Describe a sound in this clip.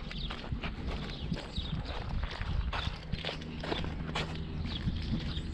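Footsteps crunch on gravel and concrete.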